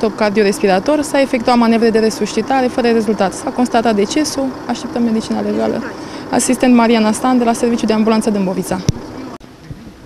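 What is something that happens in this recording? A woman speaks calmly and close into microphones.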